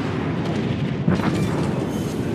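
Heavy naval guns fire with loud booms.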